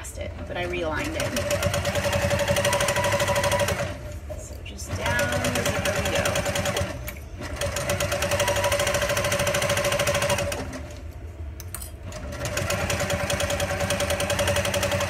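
A sewing machine whirs rapidly in bursts, stopping and starting again.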